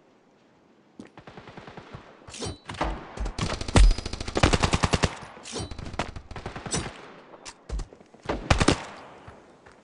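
Rifle shots crack in rapid bursts nearby.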